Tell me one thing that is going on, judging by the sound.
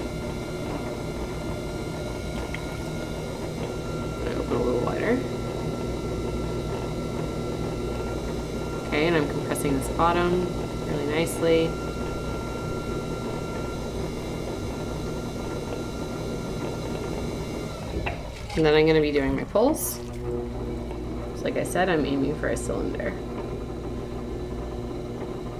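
A pottery wheel hums steadily.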